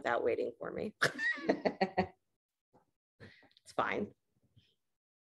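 A middle-aged woman laughs close to the microphone.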